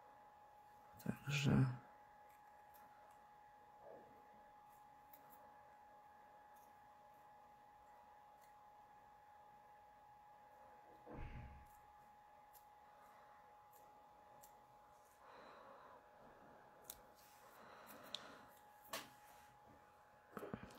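Paper crinkles and rustles softly between fingers.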